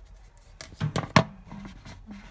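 Plastic lids clatter and tap against plastic containers.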